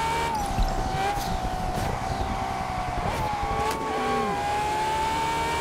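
A sports car engine roars steadily at high revs.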